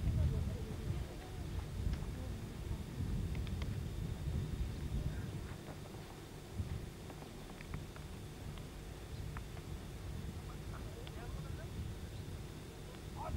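Wind blows across open ground, rumbling against the microphone.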